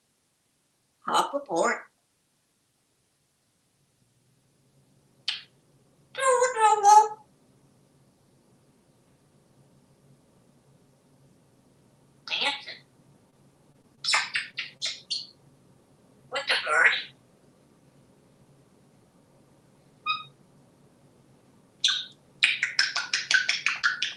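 A parrot squawks, whistles and chatters in short bursts close by.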